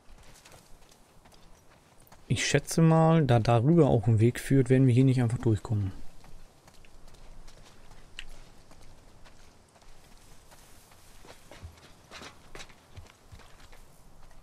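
Footsteps tread on wet ground and grass.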